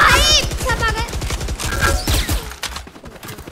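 Rapid gunfire cracks in quick bursts.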